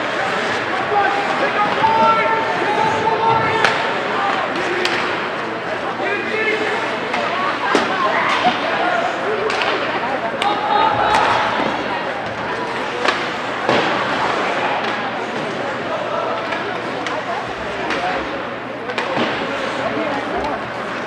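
Ice hockey skates scrape and carve across the ice in an echoing rink.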